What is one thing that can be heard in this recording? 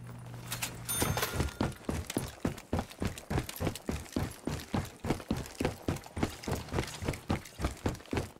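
Heavy footsteps thud quickly and evenly on a wooden walkway.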